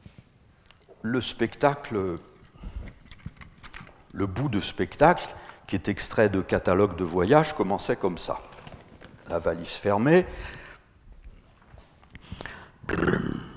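A man speaks with animation into a microphone in a large echoing hall.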